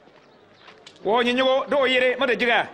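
A man speaks loudly and firmly, close by.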